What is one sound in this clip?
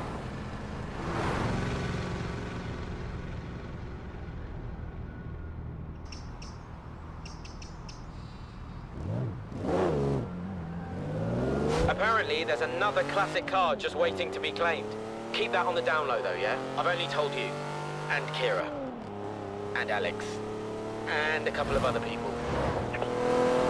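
A car engine hums and revs up through the gears, rising and falling in pitch.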